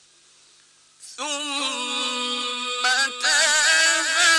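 A man chants in a long, wavering, melodic voice, close to a microphone.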